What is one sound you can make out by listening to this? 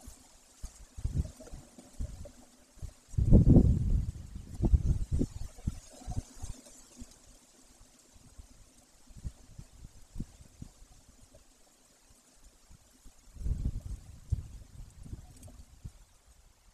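A large bird shuffles and rustles on a nest of dry twigs.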